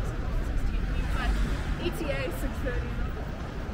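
A young woman talks briefly close by.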